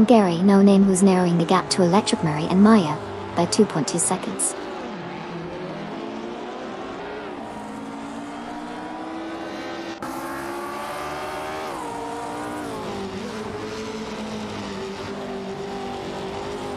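A racing car engine roars and revs as it speeds along.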